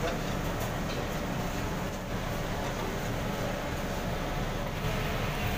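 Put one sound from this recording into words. A metal ladle scrapes and stirs inside a large cooking pot.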